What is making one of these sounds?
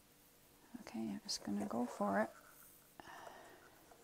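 A plastic cup scrapes lightly as it is lifted off a board.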